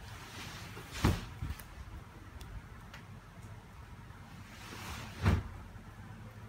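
A mattress thumps softly onto a wooden bed frame.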